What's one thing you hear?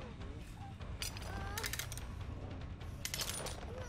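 A metal trap clanks and creaks as it is set.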